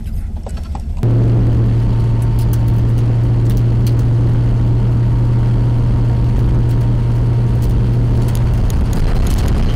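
Tyres rumble over a gravel road.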